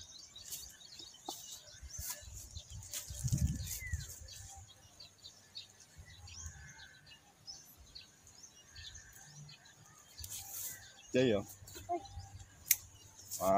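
Leaves rustle as a hand handles a vine.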